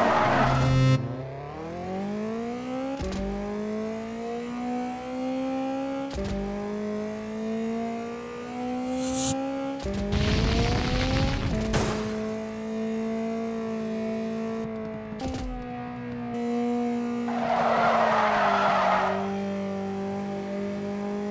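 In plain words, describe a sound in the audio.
A car engine revs up, rising in pitch through gear changes.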